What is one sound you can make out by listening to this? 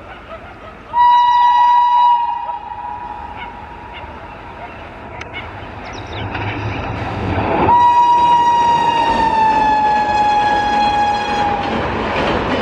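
A train horn blares loudly, then fades as it drops in pitch.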